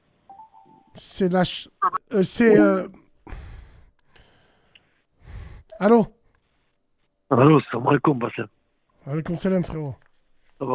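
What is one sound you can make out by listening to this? A man talks into a close microphone, in short bursts.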